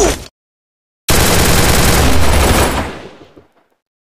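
Gunfire rattles in quick bursts from a video game.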